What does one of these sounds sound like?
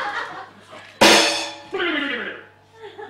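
A cymbal is struck with a drumstick.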